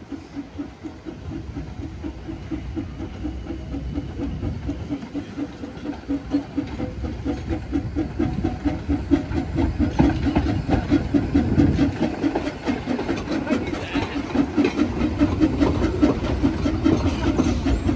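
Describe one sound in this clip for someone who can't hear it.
Steel wheels rumble and clank over the rail joints.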